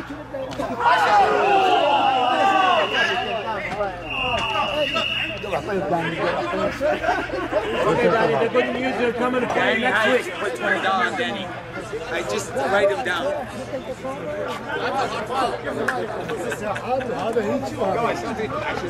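Men shout and call out across an outdoor pitch.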